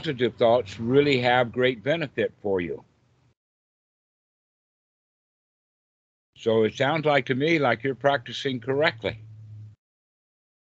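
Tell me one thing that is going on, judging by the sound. An elderly man talks with animation over an online call.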